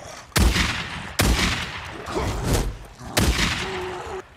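Gunshots ring out in loud, sharp bursts.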